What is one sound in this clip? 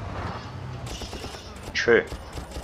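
Gunshots crack.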